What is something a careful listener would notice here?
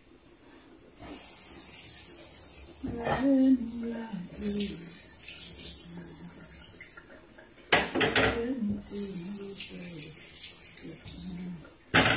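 Tap water runs into a sink.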